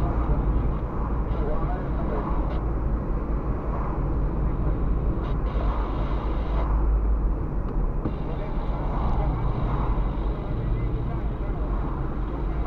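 A car engine hums steadily from inside the car.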